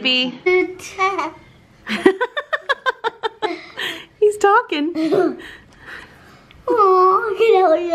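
A baby coos softly.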